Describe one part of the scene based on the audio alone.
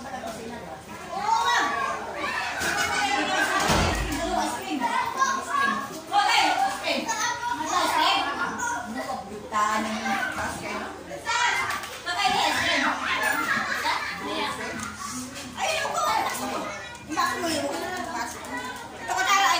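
Several women talk and laugh nearby.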